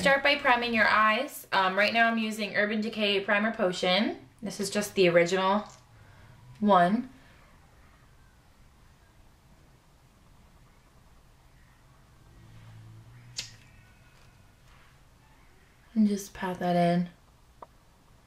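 A young woman talks close to a microphone, calmly and with animation.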